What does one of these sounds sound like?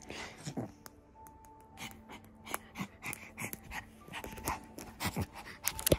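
A small dog chews and nibbles on a rubber ball.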